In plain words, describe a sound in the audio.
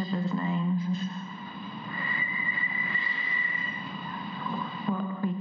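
A woman sings long, steady notes close by.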